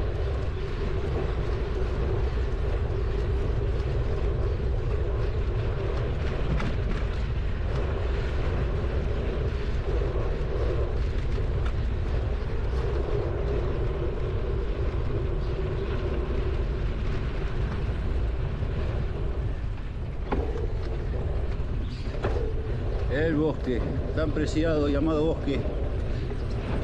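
Tyres roll and crunch steadily over a dirt road.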